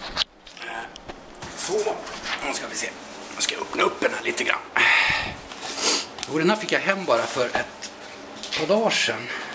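A rolled foam mat rustles and scrapes as hands handle it close by.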